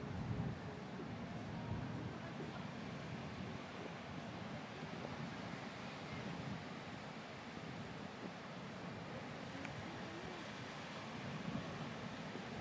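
Ocean waves break on a reef and rumble in the distance.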